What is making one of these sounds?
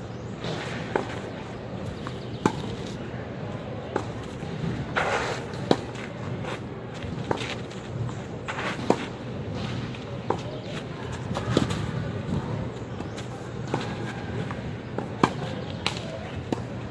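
A tennis ball is struck with a racket in a sharp pop, again and again.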